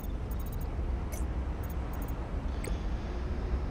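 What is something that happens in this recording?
A soft menu click sounds once.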